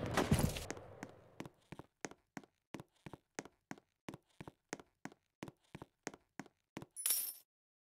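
Quick footsteps patter steadily on hard ground.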